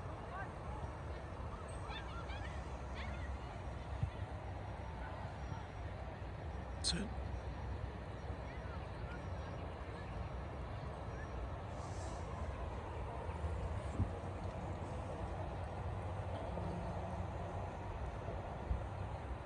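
Distant players shout across a field now and then.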